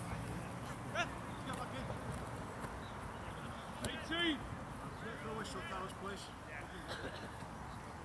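Young men shout to each other across an open field.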